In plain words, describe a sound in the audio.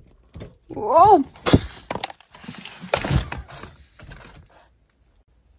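Plastic toys clatter and rattle as they are shuffled around in a basket.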